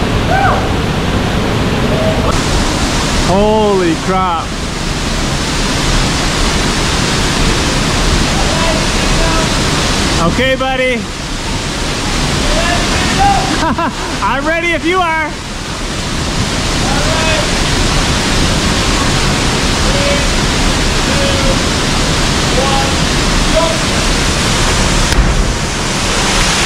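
Water rushes steadily over rocks.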